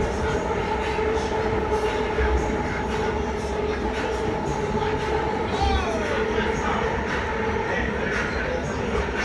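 An electric commuter train's motors whine.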